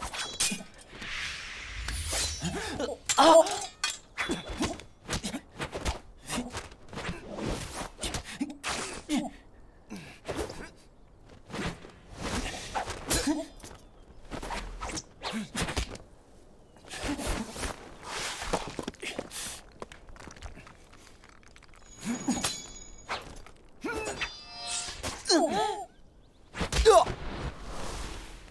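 Cloth whooshes as fighters spin and leap.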